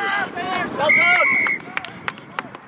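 A referee's whistle blows one short, sharp blast.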